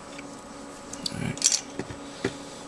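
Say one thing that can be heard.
Small plastic parts click and tap against each other.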